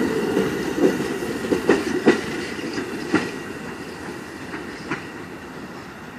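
A train rumbles past close by and fades away.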